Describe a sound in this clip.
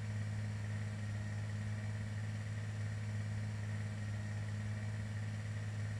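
A propeller plane's engines drone steadily.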